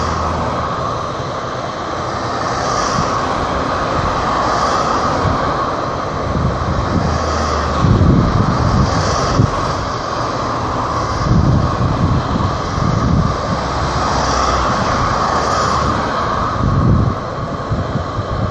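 Dry grass rustles in the wind.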